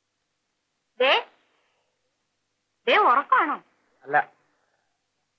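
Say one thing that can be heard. A woman speaks briefly.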